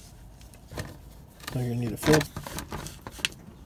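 A screwdriver turns a screw in a plastic undertray.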